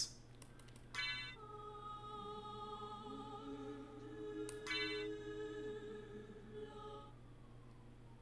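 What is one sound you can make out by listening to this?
Electronic menu music plays softly with chiming beeps.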